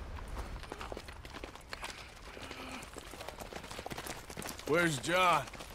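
Horse hooves clop on a gravel track.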